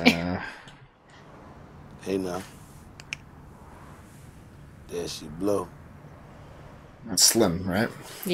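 A man speaks in short, emphatic bursts with pauses between.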